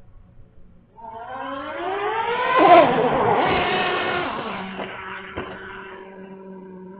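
A small electric motor whines, rising in pitch as it speeds up.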